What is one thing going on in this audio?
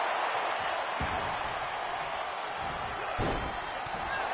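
Heavy thuds sound as a wrestler slams onto the mat.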